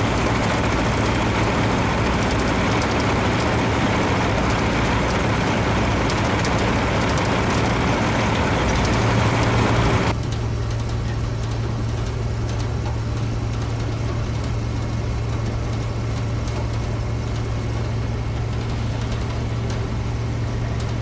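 Dirt and sand pour and patter onto a metal trailer floor.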